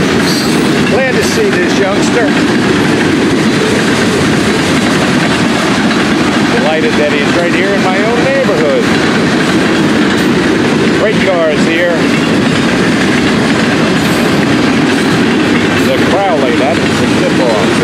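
Train wheels squeal against the rails now and then.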